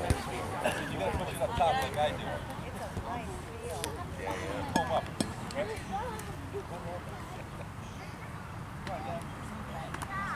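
Young players shout and chatter across an open field.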